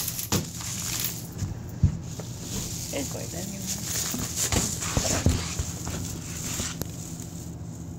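Fabric rustles and bumps close by.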